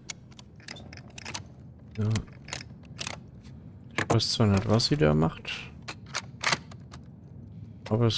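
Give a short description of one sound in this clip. Metal parts click and clink as a crossbow is assembled by hand.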